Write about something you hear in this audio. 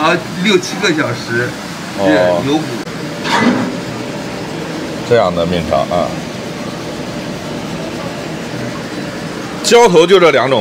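A pot of water bubbles and boils steadily.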